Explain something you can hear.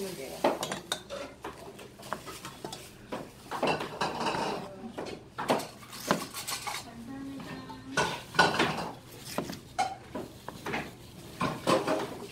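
A knife chops through cucumber and taps on a cutting board.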